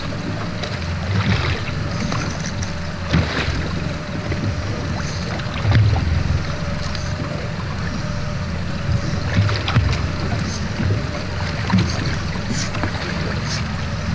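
A multiplier fishing reel clicks as its line is wound in.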